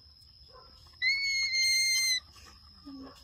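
A baby monkey lets out a shrill, high squeal close by.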